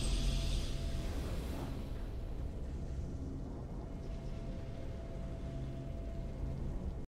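Triumphant game music plays with a swelling chime.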